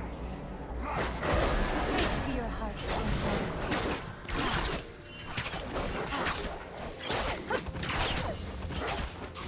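Magic spells whoosh and crackle in a fast fight.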